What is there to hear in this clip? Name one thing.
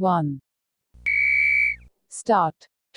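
An electronic beep sounds once, steady and high.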